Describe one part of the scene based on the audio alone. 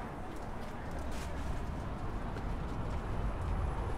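Footsteps climb stone stairs.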